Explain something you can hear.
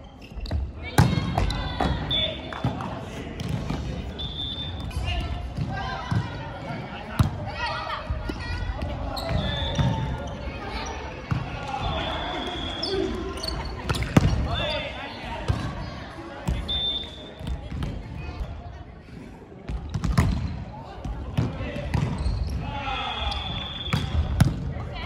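A volleyball is hit with sharp slaps in a large echoing hall.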